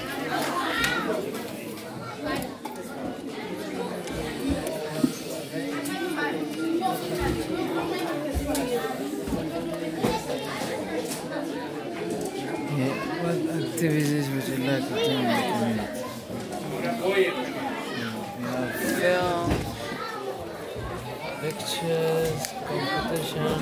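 Many adults and children chatter in an echoing room.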